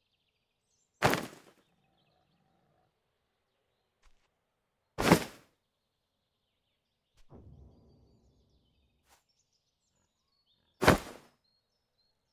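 Seeds rustle and scatter from a cloth sack in short bursts.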